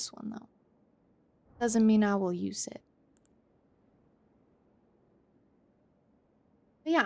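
A young woman speaks briefly into a close microphone, her voice rising and falling.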